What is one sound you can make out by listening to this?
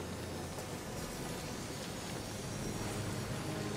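Fire crackles softly in braziers.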